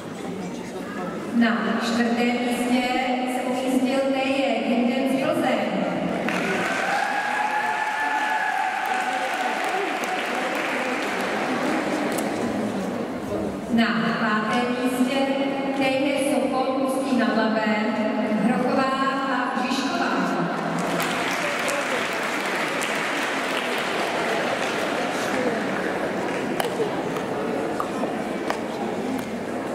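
A crowd of girls chatters in a large echoing hall.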